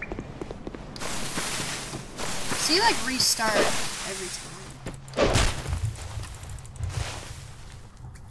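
Footsteps rustle through tall grass at a run.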